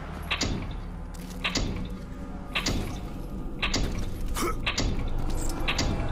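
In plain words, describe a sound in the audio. Metal rungs clank in a steady rhythm as a figure climbs a ladder.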